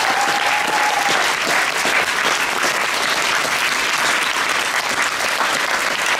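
A group of performers claps their hands.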